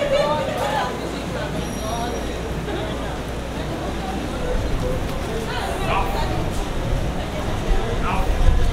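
A crowd of onlookers chatters and calls out outdoors.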